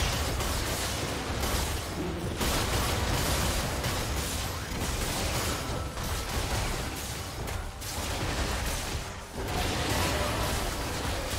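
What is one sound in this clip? Magic spell effects whoosh and crackle in quick bursts.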